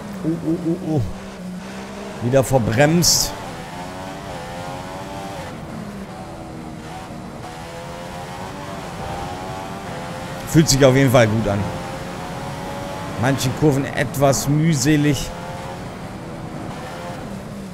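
A racing car engine whines at high revs, rising and dropping in pitch as the gears change.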